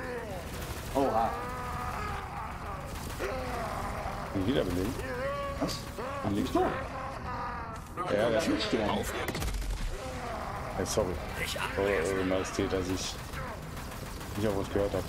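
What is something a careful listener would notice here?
Young men talk with animation through a microphone.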